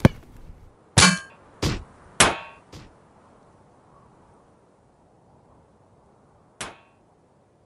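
A football thumps as it bounces on the ground.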